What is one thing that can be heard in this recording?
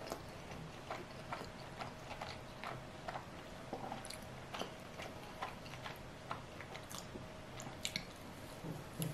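A young woman chews crunchy food close to a microphone with wet, crisp sounds.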